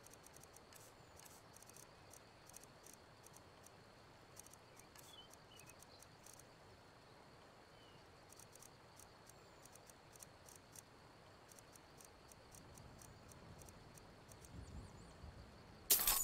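Soft menu clicks tick in quick bursts.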